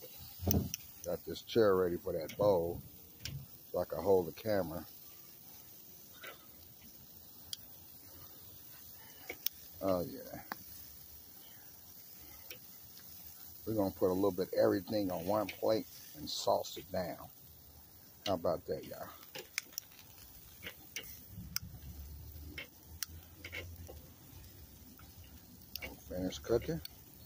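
Meat sizzles and crackles on a hot grill.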